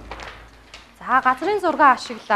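A woman speaks nearby in a lively, sing-song voice.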